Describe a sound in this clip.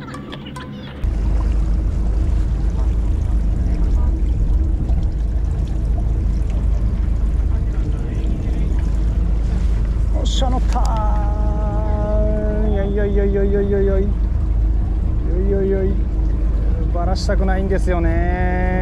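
Wind buffets steadily outdoors on open water.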